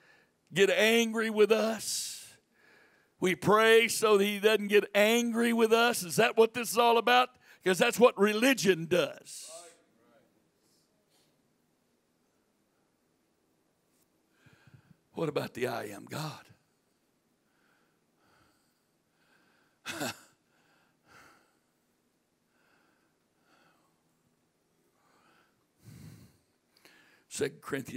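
An elderly man speaks loudly and with animation into a microphone, heard through loudspeakers in a large room.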